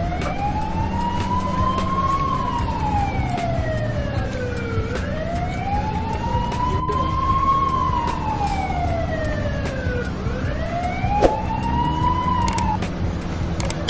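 A siren wails in slow rising and falling sweeps.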